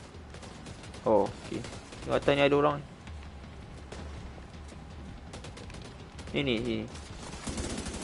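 A young man talks into a microphone with animation.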